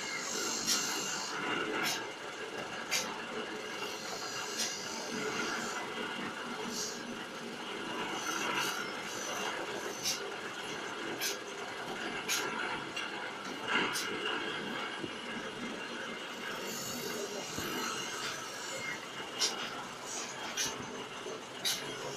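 Glass bottles clink against each other on a conveyor.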